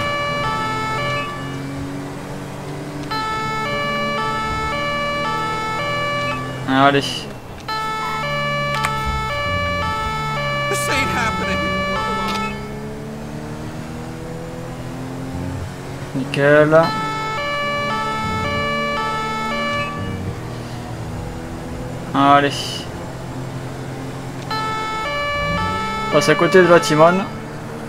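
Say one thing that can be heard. A police van's engine accelerates and shifts gears.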